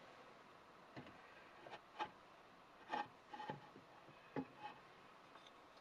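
A large wooden gear scrapes and taps against wood.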